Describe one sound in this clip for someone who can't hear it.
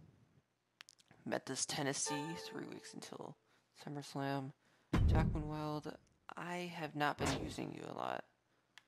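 A young woman talks into a close microphone with animation.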